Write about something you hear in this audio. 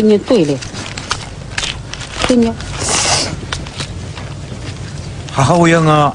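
Paper banknotes rustle as they are counted.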